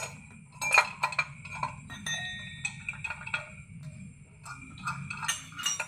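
Metal parts clink and scrape as an engine part is handled by hand.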